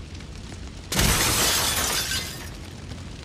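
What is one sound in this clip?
A wooden wall bursts apart with a loud crash.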